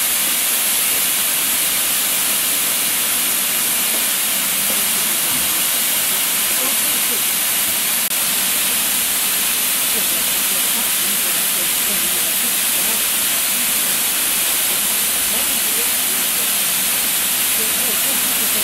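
Steam hisses loudly and steadily from a locomotive.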